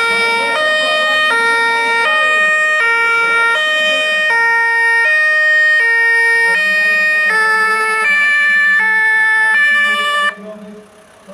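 An ambulance siren sounds in a quick alternating pattern of tones.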